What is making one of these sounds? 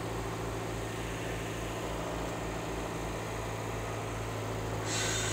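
A carburetted petrol car engine idles.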